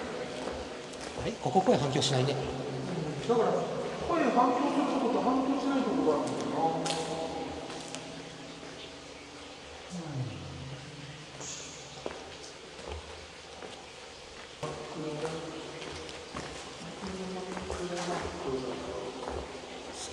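Men talk in a tunnel.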